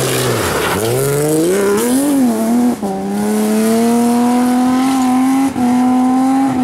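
A rally car engine revs hard and rises in pitch through quick gear changes.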